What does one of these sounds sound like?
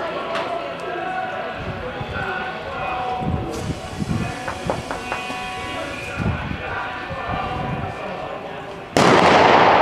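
A horse's hooves thud on soft dirt.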